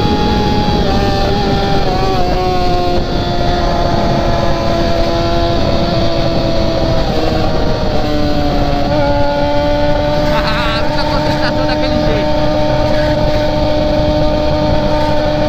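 A motorcycle engine drones steadily at speed, its pitch shifting as gears change.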